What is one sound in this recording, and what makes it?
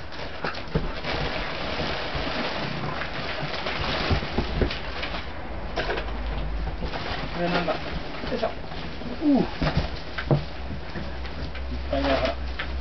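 Plastic wrapping crinkles loudly.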